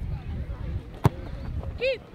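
A soccer ball is kicked with a sharp thud.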